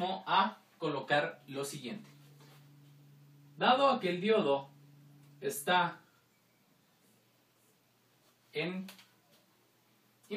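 A man speaks calmly and clearly nearby, explaining in short phrases.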